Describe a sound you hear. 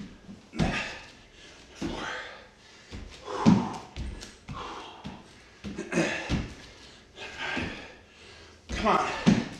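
A man breathes hard with each effort.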